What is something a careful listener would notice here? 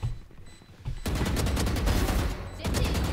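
Gunfire rattles rapidly in a video game.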